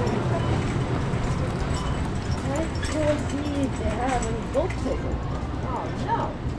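A shopping cart rolls and rattles along a hard floor.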